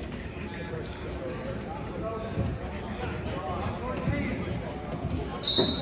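Wrestlers thud onto a mat.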